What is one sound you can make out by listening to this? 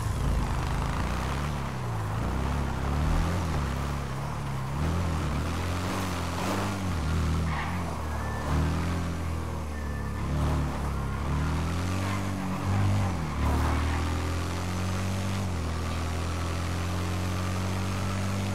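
A motorcycle engine revs up and down repeatedly.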